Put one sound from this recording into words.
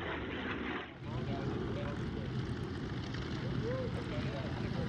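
A propeller plane's engine rumbles and idles close by.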